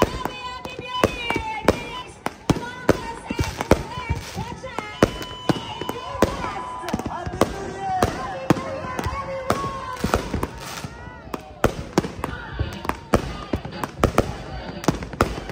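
Firework rockets whistle as they shoot upward.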